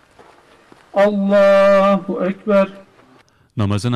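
A man chants a prayer through a microphone outdoors.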